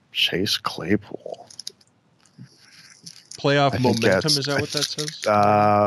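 A foil card wrapper crinkles as it is torn open.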